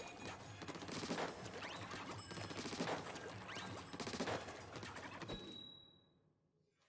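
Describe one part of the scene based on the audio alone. Game weapons splat and spray ink in rapid bursts.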